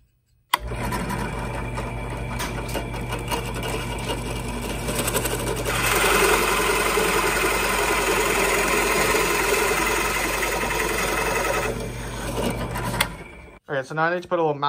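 A drill press motor hums steadily, then stops.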